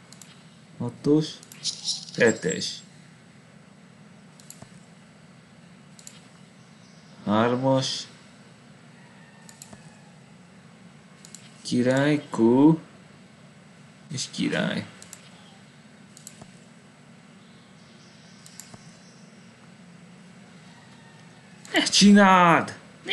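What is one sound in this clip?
A person speaks briefly into a microphone, with long pauses.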